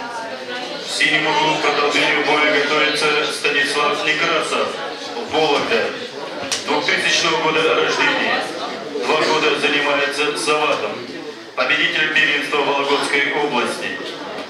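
A man announces loudly over a loudspeaker.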